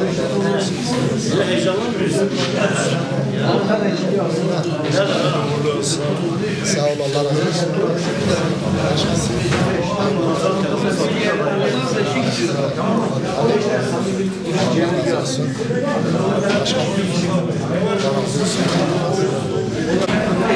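A crowd of men chatter and greet each other indoors.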